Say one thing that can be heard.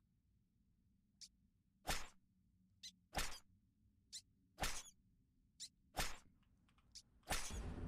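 Short clicking game sound effects play.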